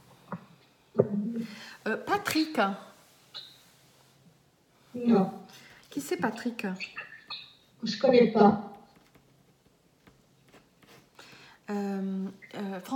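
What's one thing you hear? A middle-aged woman speaks calmly and close to the microphone, with pauses.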